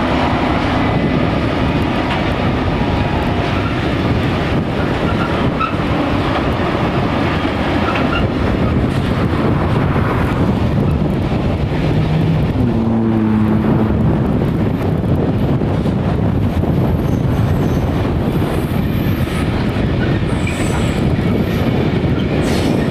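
A long freight train rumbles and clatters steadily across a bridge nearby.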